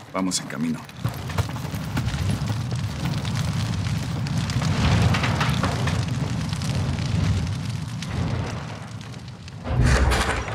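A fire roars and crackles steadily.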